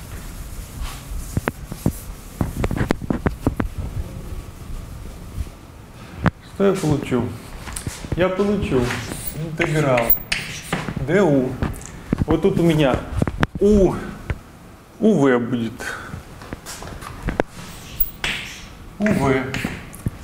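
Chalk taps and scrapes on a board.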